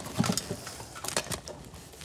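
A metal helmet clanks as a man puts it on.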